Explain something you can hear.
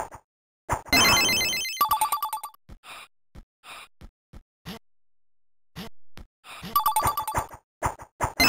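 Electronic game sound effects blip, bounce and chime in quick bursts.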